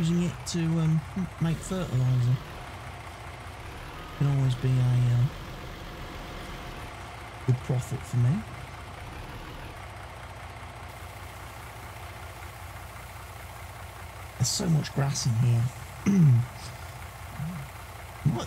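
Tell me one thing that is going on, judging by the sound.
A truck engine idles with a low, steady hum.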